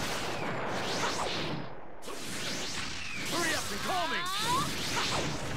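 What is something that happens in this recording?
Whooshing strikes and crackling energy blasts sound in a video game fight.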